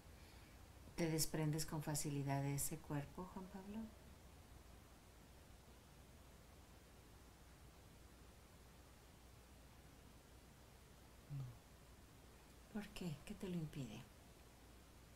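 A middle-aged woman speaks quietly and calmly nearby.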